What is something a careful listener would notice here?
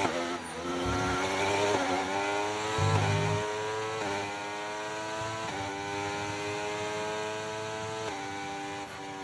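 A racing car engine screams, rising in pitch through quick gear shifts.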